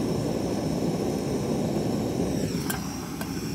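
A gas torch roars steadily close by, then shuts off.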